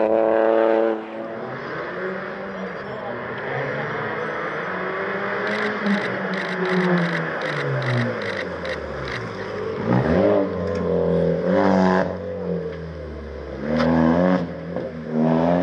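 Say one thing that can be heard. A rally car engine revs up and down as the car approaches and shifts gears.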